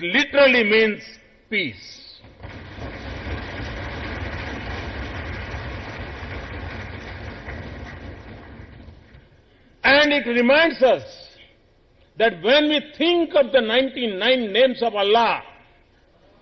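An elderly man speaks steadily into a microphone in a large hall.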